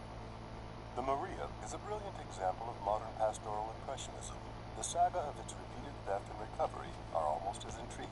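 A recorded voice narrates calmly through a small loudspeaker.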